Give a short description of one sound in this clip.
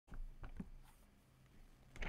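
A man handles a phone with small clicks and taps.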